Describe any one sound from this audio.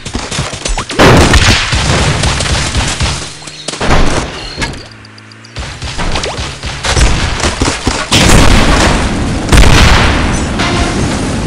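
Weapons fire rapidly and small explosions burst in a busy battle.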